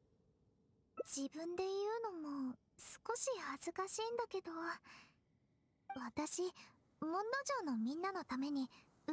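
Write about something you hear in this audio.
A young woman speaks softly and sweetly, close up.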